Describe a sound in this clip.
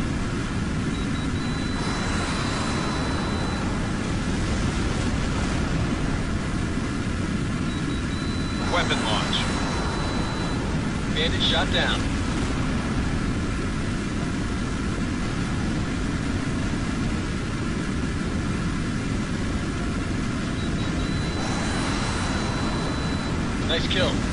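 A missile lock tone beeps in a long steady note.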